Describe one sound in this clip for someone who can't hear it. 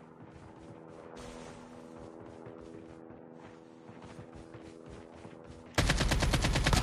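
Footsteps run quickly over grass and ground.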